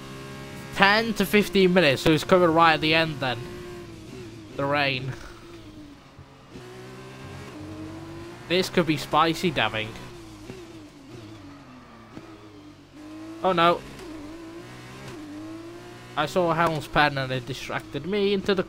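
A racing car engine whines at high revs, dropping and rising in pitch through gear changes.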